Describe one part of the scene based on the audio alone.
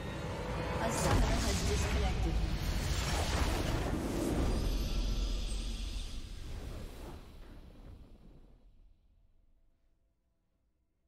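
A triumphant victory fanfare swells and fades.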